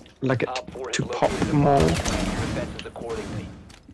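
A rifle fires a few shots.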